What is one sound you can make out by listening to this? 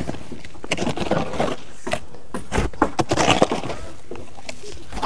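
Hoes chop and scrape into dry earth and stones.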